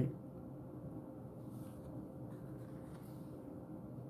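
A sheet of card is set down lightly on a table.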